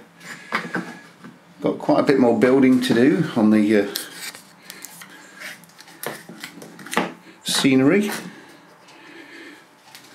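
A small wooden piece knocks lightly as it is set down on a board.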